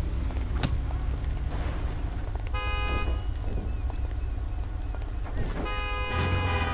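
Car engines hum steadily in passing traffic.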